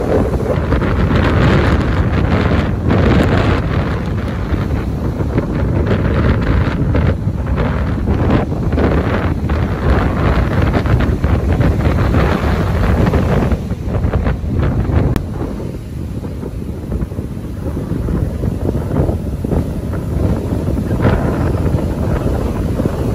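Strong wind buffets the microphone, roaring outdoors.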